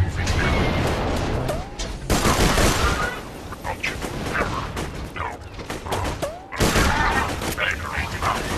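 Gunfire and explosions crackle in bursts.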